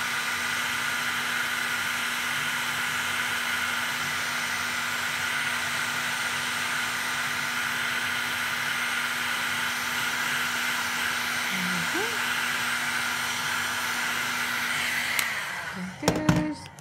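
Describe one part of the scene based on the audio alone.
A heat gun blows with a steady roar, then switches off.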